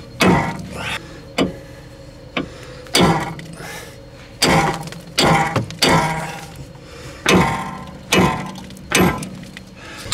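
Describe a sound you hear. A hammer strikes metal in sharp, ringing blows.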